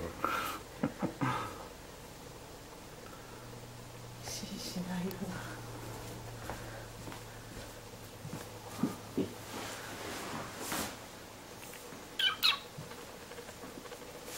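A kitten's paws patter softly on a thick rug.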